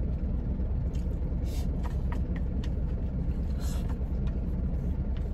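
A man sips broth noisily from a container.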